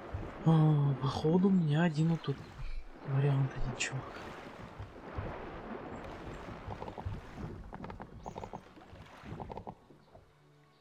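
Sea waves wash and splash.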